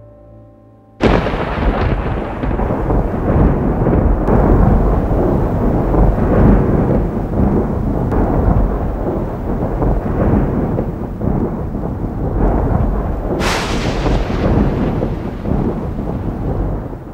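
A huge ocean wave roars and crashes close by.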